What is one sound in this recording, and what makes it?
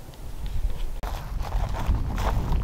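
Dry grass rustles as a person shifts on the ground.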